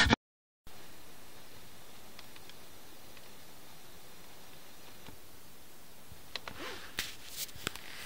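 Buttons click on a car radio.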